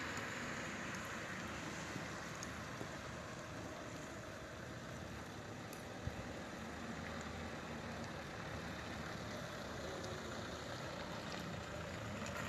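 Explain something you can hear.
Car tyres hiss slowly over a wet road.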